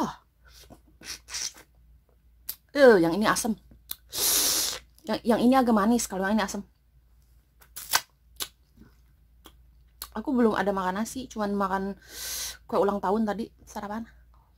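A young woman smacks her lips while eating.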